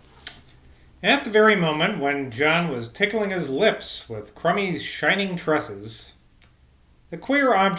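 A man reads aloud calmly, close to a microphone.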